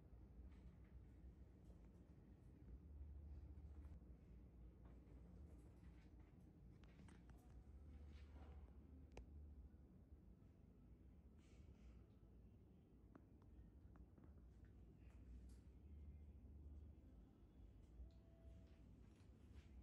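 A machine hums low and steady.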